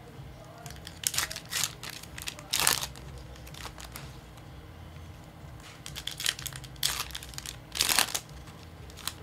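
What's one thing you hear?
Foil wrappers crinkle and tear as a card pack is opened.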